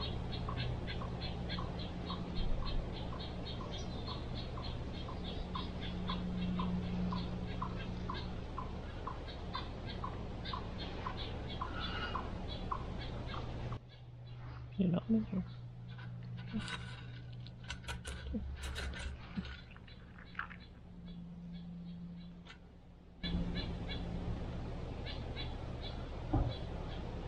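A chipmunk gives a rhythmic chipping call.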